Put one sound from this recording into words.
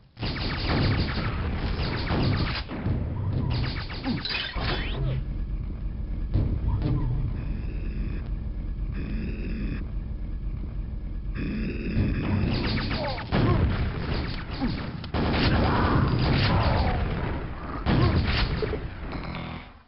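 Gunshots and blasts ring out in a video game.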